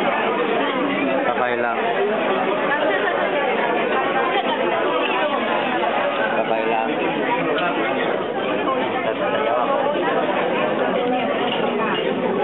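A young girl chatters and giggles close by.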